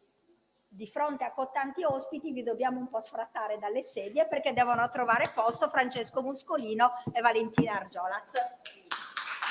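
A woman speaks calmly into a microphone over loudspeakers in a room.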